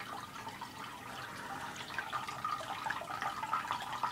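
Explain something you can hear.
Water bubbles and gurgles steadily.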